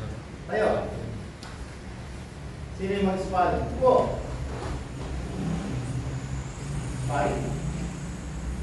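Young voices call out loudly in short bursts in an echoing room.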